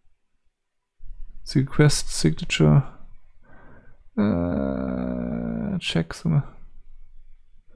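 An elderly man speaks with animation close to a microphone, drawing out one word in a long held tone.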